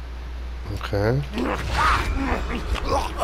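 A heavy blade swings through the air with a whoosh.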